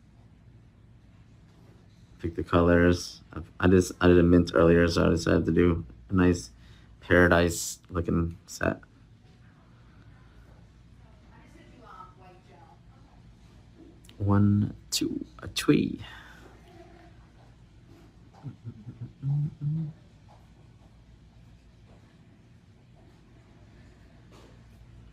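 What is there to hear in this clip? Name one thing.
A brush strokes softly across a fingernail.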